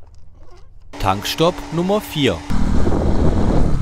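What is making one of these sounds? A motorcycle engine revs up loudly and then roars steadily.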